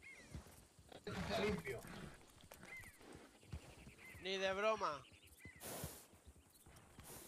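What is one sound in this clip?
Horses' hooves thud softly on grassy ground.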